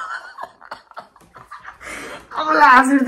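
A young woman giggles close by.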